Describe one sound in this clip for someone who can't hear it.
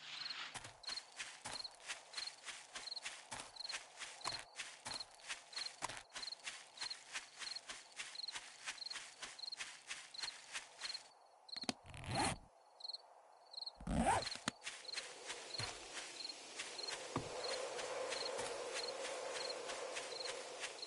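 Footsteps rustle steadily through grass and undergrowth.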